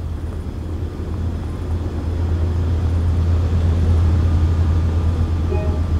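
A train engine idles nearby with a low, steady rumble.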